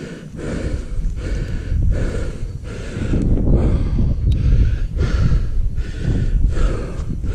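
Boots wade through shallow marsh water and grass.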